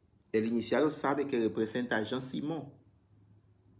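A man speaks with animation, close to the microphone.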